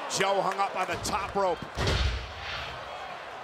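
A body slams heavily onto a wrestling mat with a deep thud.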